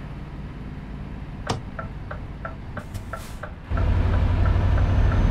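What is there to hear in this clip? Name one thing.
A truck engine hums low and steady, growing louder.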